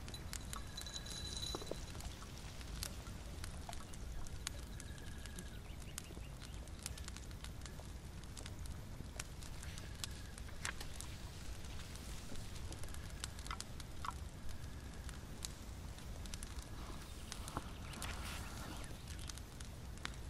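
A small fire crackles and pops softly.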